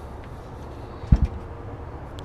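A heavy grill lid thuds shut.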